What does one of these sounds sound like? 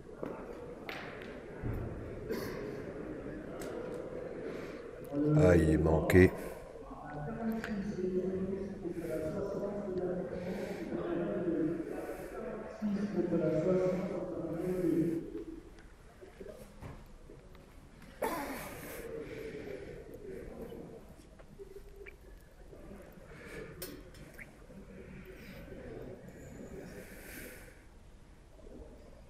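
A seated crowd murmurs quietly.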